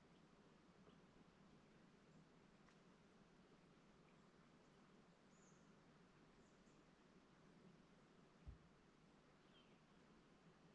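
Light wind rustles through dry grass outdoors.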